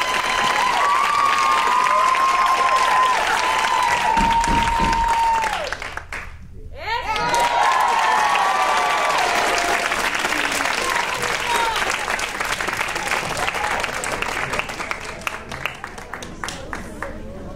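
An audience claps and cheers loudly in a large hall.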